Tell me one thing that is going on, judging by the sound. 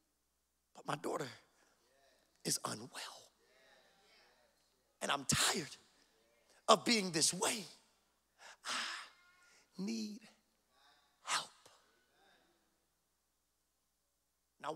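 A man preaches with passion into a microphone, in bursts with pauses between.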